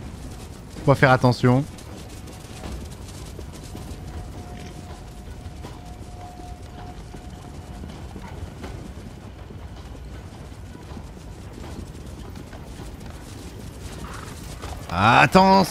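Horses gallop with hooves clattering on stone.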